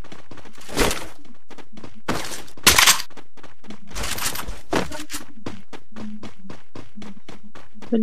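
Quick footsteps patter over grass.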